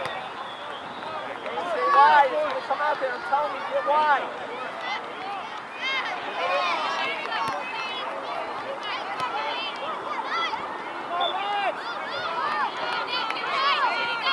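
Young women players shout and call to each other outdoors.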